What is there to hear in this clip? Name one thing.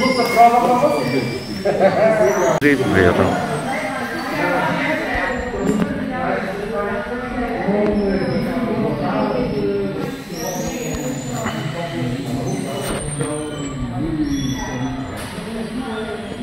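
A man speaks to a group, explaining, in an echoing room.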